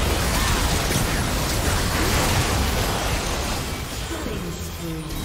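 Game spell effects crackle and boom in a busy fight.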